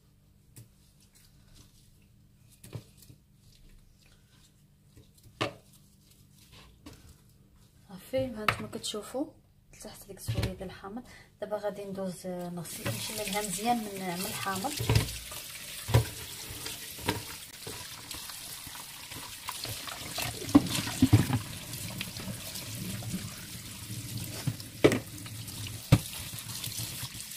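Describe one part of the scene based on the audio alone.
Wet meat squelches as hands rub it.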